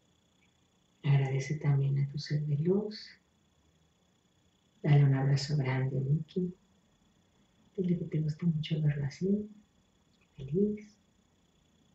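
A woman speaks calmly and close by in short phrases with pauses.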